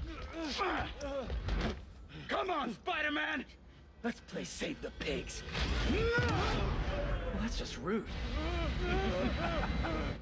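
A man shouts and groans in anger, up close.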